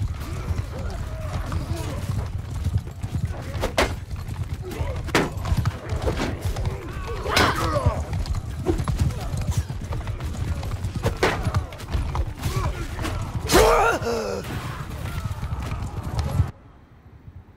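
A crowd of fighting men shouts and yells.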